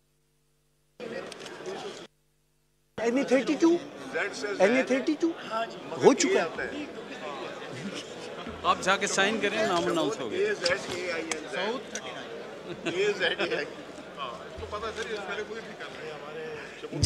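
Several men talk and murmur nearby.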